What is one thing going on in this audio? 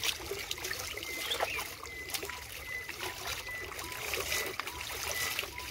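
Water splashes and trickles as hands scoop it from a shallow stream.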